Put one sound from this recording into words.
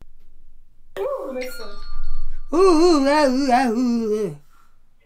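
A woman talks through an online call.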